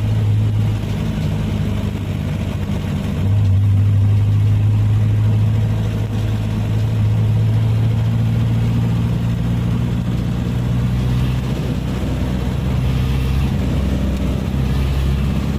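Tyres hum on the road.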